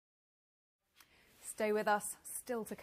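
A young woman speaks clearly and calmly, close to a microphone.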